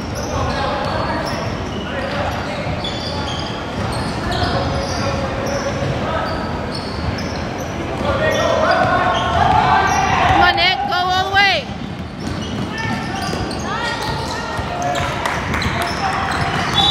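Sneakers squeak sharply on a wooden court in a large echoing hall.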